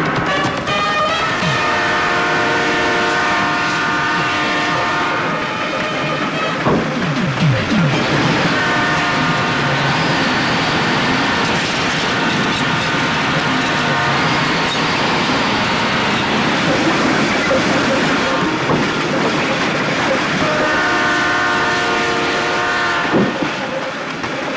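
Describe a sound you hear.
A train horn blares in long, loud blasts.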